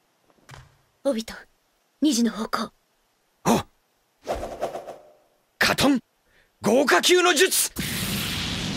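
A young boy speaks with determination.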